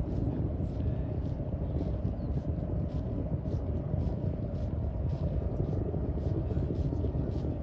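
Footsteps tap on a paved path at a steady walking pace.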